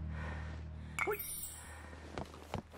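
A short chime sounds as an item is picked up.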